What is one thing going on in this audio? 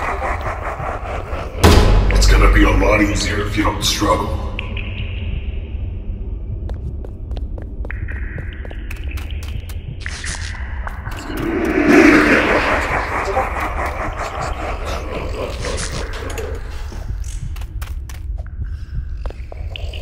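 Footsteps tap on stone floor.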